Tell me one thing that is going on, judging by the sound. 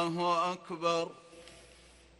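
A man chants in a long, drawn-out voice through a loudspeaker in a large, echoing space.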